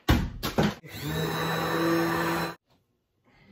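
A hand blender whirs loudly.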